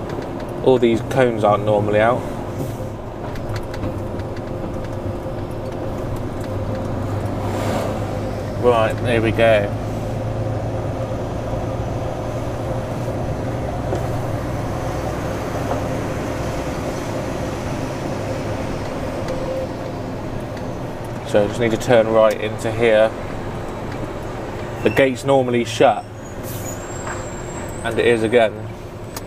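A man talks calmly close to a microphone, in short bursts.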